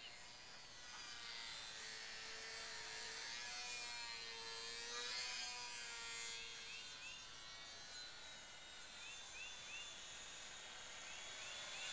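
A small model airplane engine buzzes overhead, its whine rising and falling as it passes.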